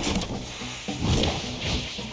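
A fiery blast booms and crackles.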